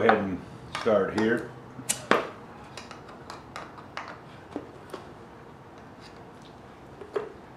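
A tin lid clicks and taps as it is pried with a metal tool.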